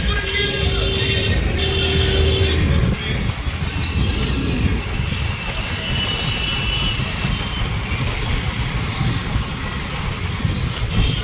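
Wind buffets the microphone on a moving scooter.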